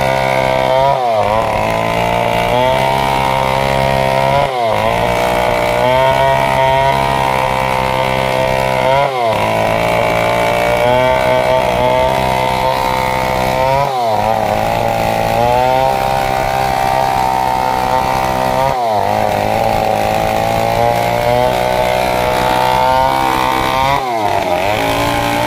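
A chainsaw engine roars loudly as it cuts through a log, its pitch dipping briefly every few seconds.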